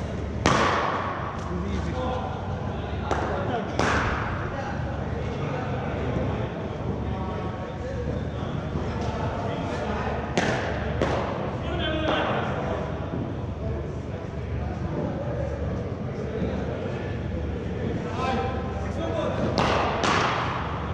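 A cricket ball cracks sharply off a bat.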